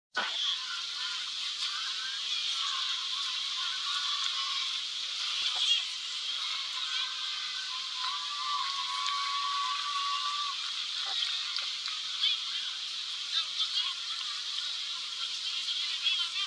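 Water rushes and splashes past a moving boat.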